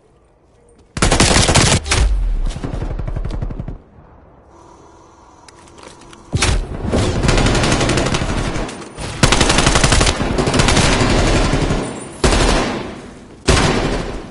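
Automatic rifle gunfire rattles in bursts.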